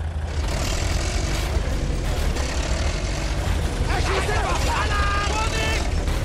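Tank tracks clatter and squeal as the tank rolls.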